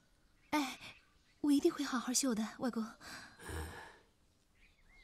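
A young woman speaks sweetly and earnestly, close by.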